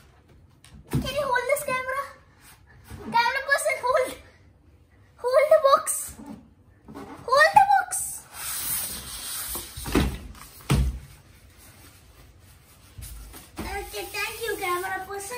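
A boy talks excitedly close by.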